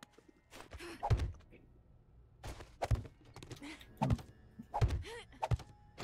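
Blocks thud as they are placed, several times.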